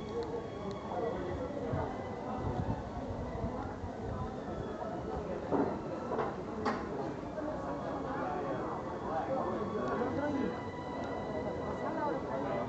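Footsteps shuffle on cobblestones.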